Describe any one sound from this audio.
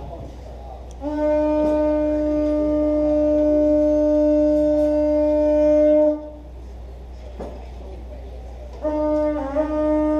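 A woman sings long held notes into a microphone over loudspeakers.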